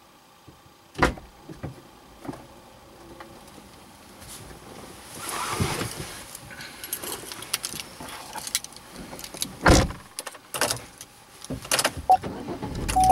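A man climbs into a car seat with thumps and rustling.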